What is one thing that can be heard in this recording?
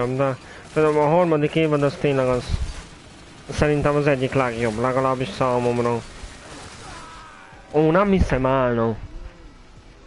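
A young man talks animatedly and loudly into a close microphone.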